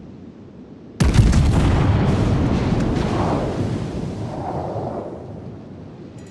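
A battleship's big guns fire with a deep, booming blast that rumbles away.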